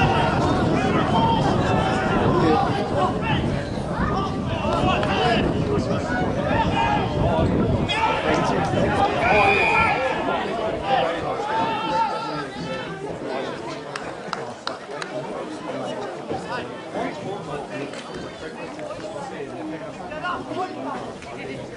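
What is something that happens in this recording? Players shout to one another across an open field.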